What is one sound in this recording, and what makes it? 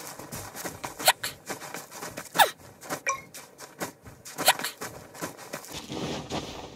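Quick scuffs and thuds of climbing on rock come in bursts.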